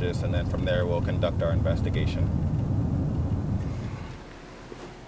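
A car engine rumbles and tyres hum on the road.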